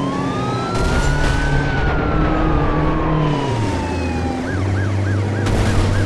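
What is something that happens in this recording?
Tyres screech as a truck skids around a corner.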